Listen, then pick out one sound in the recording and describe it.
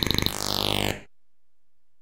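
A falling electronic zap sounds.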